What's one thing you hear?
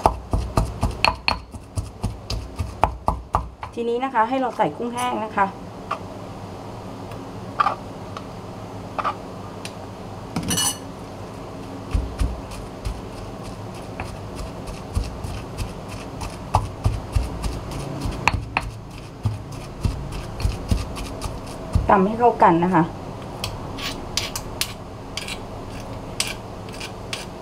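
A stone pestle pounds and grinds in a stone mortar with dull thuds.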